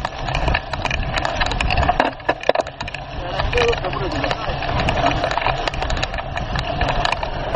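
Bicycle tyres crunch and rattle over a bumpy dirt trail.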